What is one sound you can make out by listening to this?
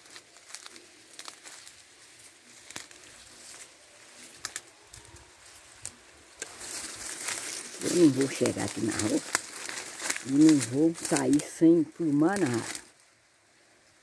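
Tall dry grass rustles and brushes close by.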